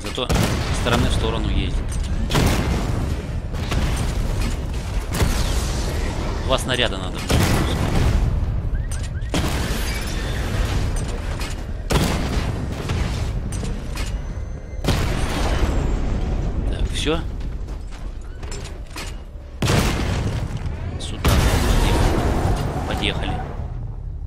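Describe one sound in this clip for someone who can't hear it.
Heavy guns fire in loud bursts.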